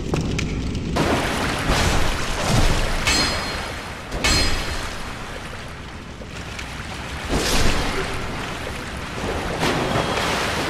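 Water splashes as a figure runs through shallow water.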